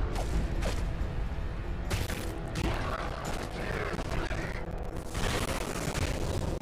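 Blades slash and clang in a video game fight.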